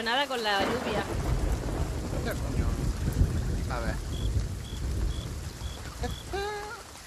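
Waves crash onto a shore.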